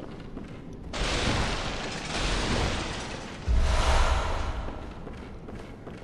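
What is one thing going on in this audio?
Wooden chairs crash and break apart.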